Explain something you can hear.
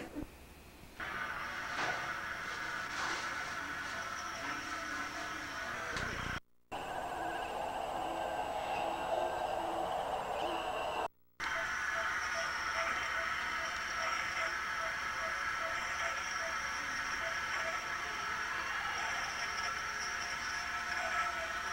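An incubator's fan hums steadily.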